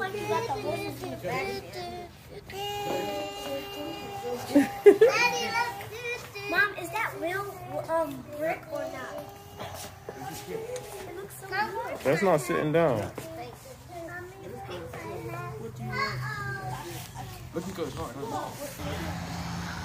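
Young children chatter and laugh nearby.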